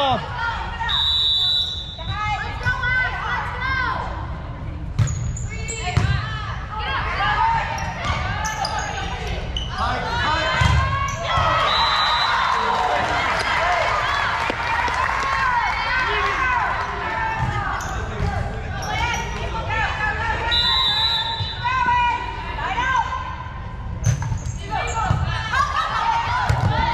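Many voices chatter and call out throughout in a large echoing gym.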